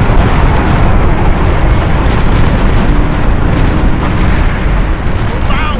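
Gunfire and explosions rumble in a game battle.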